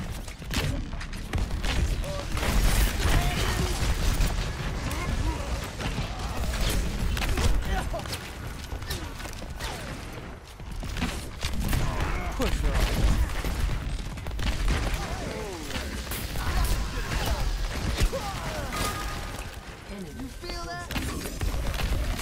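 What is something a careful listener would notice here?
Game weapons fire and blasts crackle throughout.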